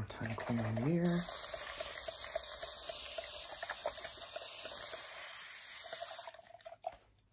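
A spray hisses steadily, then stops.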